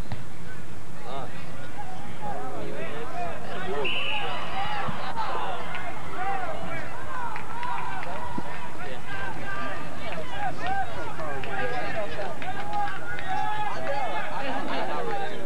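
Young people on the sideline chatter and call out, heard from a distance outdoors.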